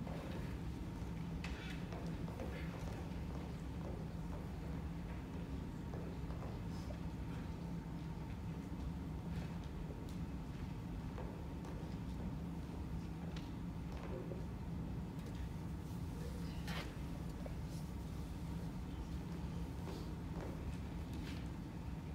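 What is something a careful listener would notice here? Footsteps tap across a wooden stage.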